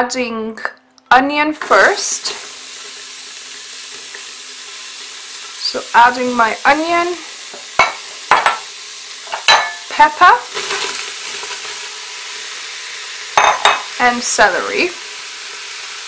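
A spatula scrapes a bowl as vegetables tip into a pot.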